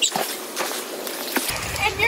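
Water splashes in a pool.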